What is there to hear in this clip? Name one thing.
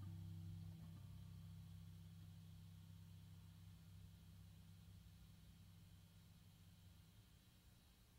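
A deep electric guitar note hums through an amplifier and slowly fades away.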